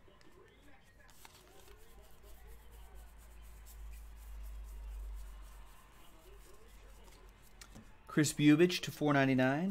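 Trading cards rustle and flick as hands shuffle through them.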